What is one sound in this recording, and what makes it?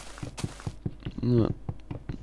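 A fist repeatedly knocks on wood.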